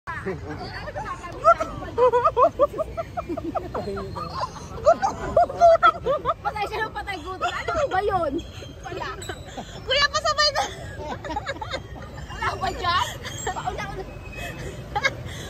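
Young people chatter and cheer excitedly close by, outdoors.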